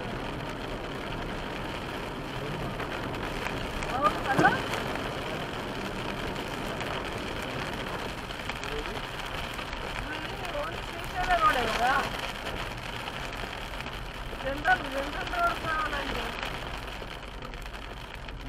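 Rain patters steadily on a car's windscreen.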